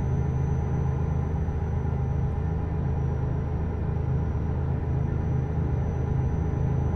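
A heavy truck engine rumbles steadily while driving.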